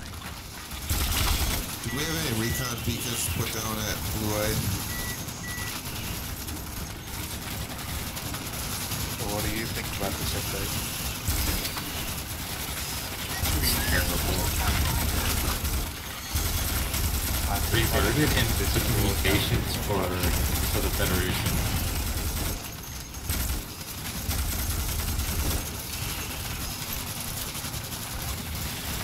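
Automatic gunfire rattles in bursts.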